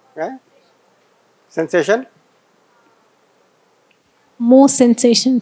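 A woman speaks in short bursts, close by.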